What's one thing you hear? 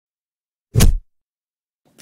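A soft thump sounds as hands press down on a surface.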